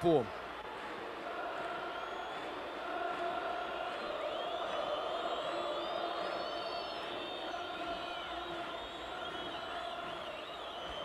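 A large stadium crowd chants in unison.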